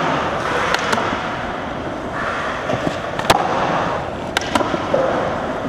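A skateboard clatters and snaps as its tail strikes the floor.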